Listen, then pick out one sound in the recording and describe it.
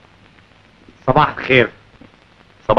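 A second man speaks briefly, close by.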